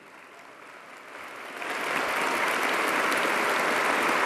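A large crowd applauds, the clapping swelling louder.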